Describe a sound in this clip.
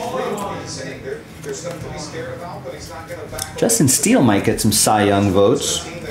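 Trading cards rustle and slide as they are shuffled.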